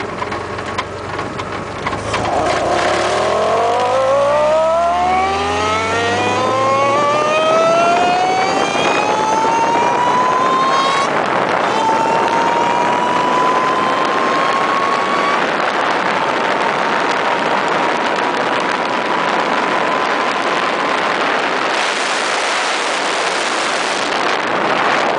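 Wind rushes loudly past an open car.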